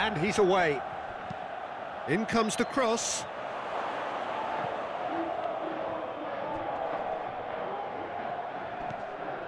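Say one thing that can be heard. A large crowd murmurs and cheers steadily in a big open stadium.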